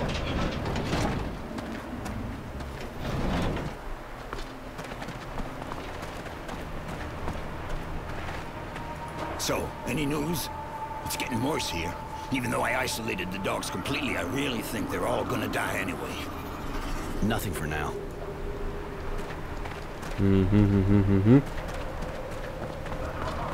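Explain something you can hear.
Footsteps crunch on gritty ground.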